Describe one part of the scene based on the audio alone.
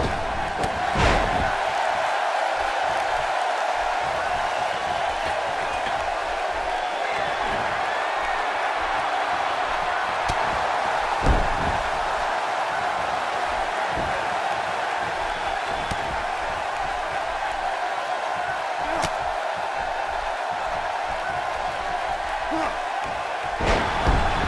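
A body slams down hard onto a wrestling ring mat.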